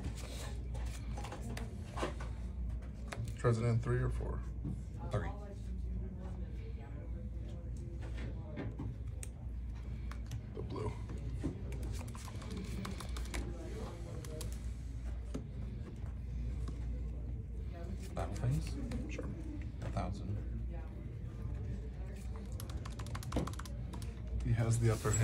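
Playing cards tap down on a soft mat.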